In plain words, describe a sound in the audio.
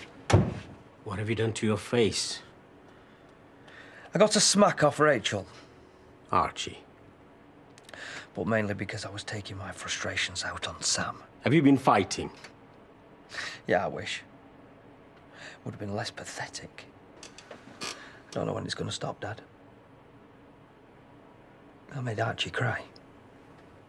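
A man speaks in a tired, irritated voice, close by.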